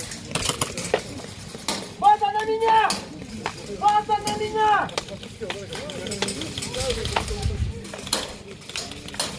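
A paintball marker fires sharp, popping shots in quick bursts.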